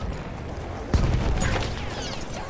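An explosion bursts with a loud boom and crackling.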